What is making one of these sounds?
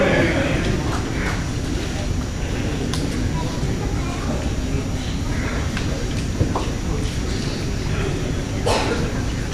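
A man speaks loudly over a loudspeaker in a large echoing hall.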